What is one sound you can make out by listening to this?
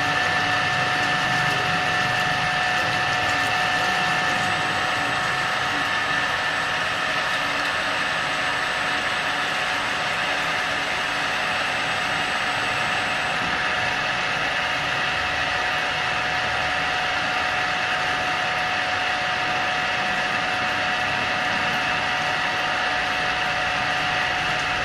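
A drill bit grinds into metal.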